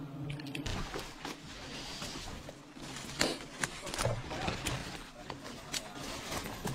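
Leafy branches rustle and twigs snap.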